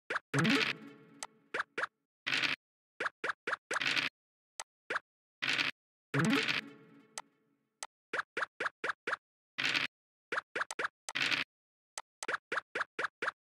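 Game pieces click as they hop from space to space.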